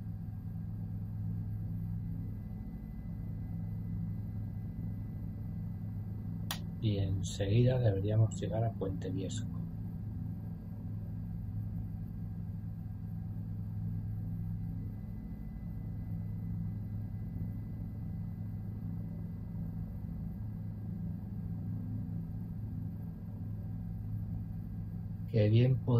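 A helicopter engine and rotor drone steadily.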